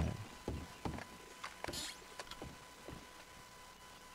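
Boots thud on a wooden floor.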